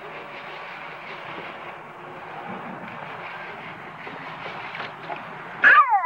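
Water splashes softly as a small child's hand stirs it.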